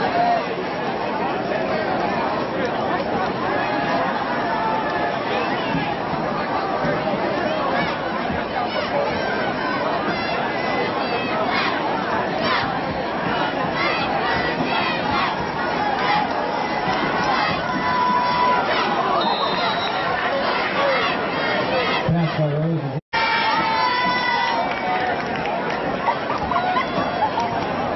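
A large crowd of spectators cheers and shouts outdoors.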